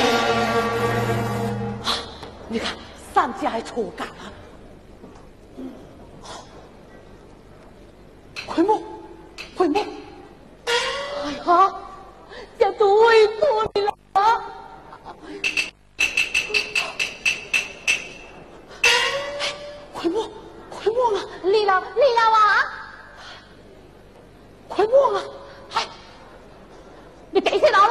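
A man sings in a high, stylised opera voice on a stage.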